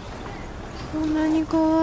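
A young woman speaks softly and gently.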